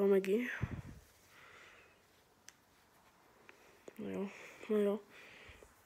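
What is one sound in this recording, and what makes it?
A hand rubs a dog's fur with soft rustling.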